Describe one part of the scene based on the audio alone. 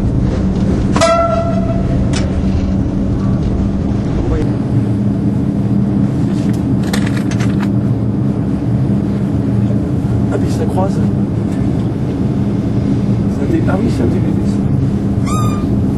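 Train wheels squeal briefly on the rails.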